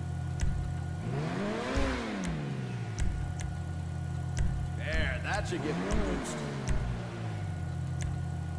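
A sports car engine revs up sharply and falls back, twice.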